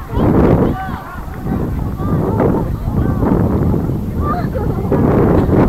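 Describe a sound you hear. Adult spectators on the sideline talk and call out.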